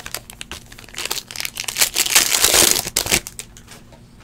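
A foil card pack tears open with a crinkle.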